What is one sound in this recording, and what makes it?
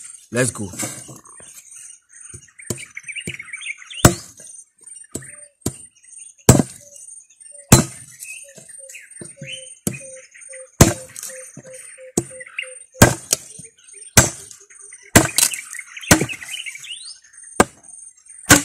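A machete chops into wooden sticks with sharp, repeated knocks.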